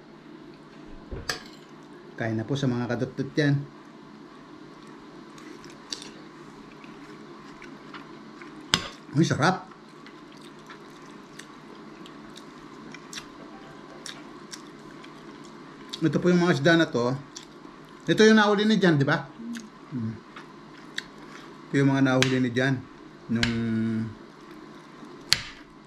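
A fork scrapes and clinks against a plate.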